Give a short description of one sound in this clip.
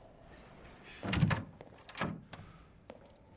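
A wooden door thumps and swings open.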